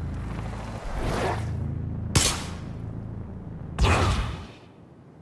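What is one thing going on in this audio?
An energy blast whooshes and crackles loudly.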